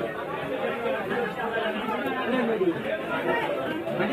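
A knife scrapes scales off a fish.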